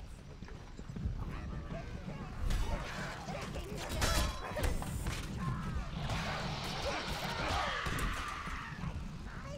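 Weapons clang and slash in a fight.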